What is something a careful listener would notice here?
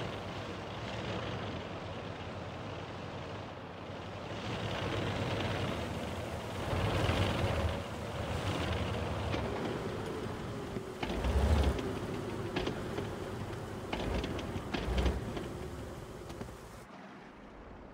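A tank engine rumbles as it drives over sand.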